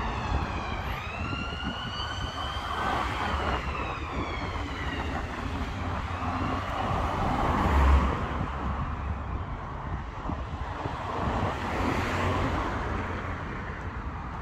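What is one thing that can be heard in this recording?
Cars pass by on a nearby road.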